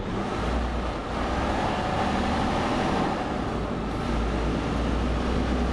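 A truck engine drones steadily as it drives along a road.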